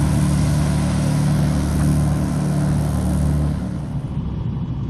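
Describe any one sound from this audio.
A small propeller plane's engine roars loudly outdoors.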